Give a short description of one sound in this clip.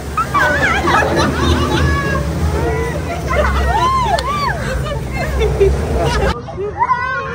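Young women scream and laugh loudly on a ride, close by.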